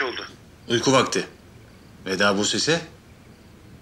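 A man speaks softly, close by.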